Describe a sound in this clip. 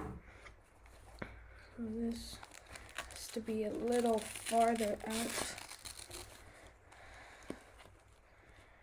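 Plastic parts click and rustle in a boy's hands.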